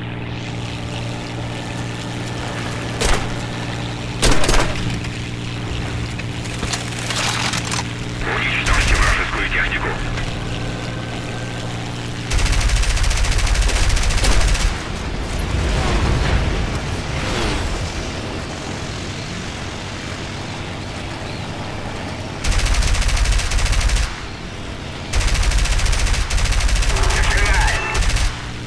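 A propeller plane engine drones steadily.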